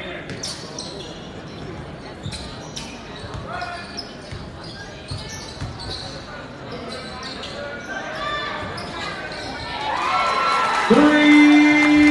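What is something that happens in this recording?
Basketball shoes squeak sharply on a wooden floor.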